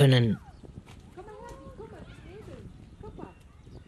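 Small parrots chirp and chatter softly.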